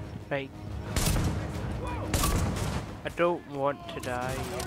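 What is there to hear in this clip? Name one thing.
Gunfire rattles in short bursts nearby.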